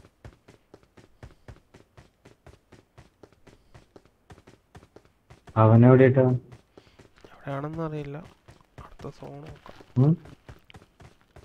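Footsteps patter quickly and steadily on a hard surface.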